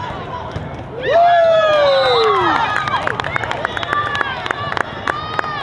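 Young women shout and cheer excitedly.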